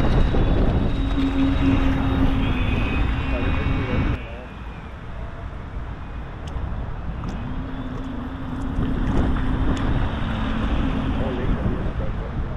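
A small model boat motor whines as the boat speeds across the water.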